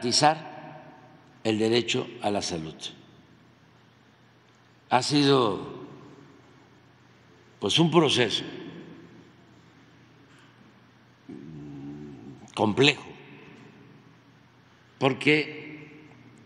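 An elderly man speaks slowly into a microphone, in short phrases with long pauses, in a large echoing hall.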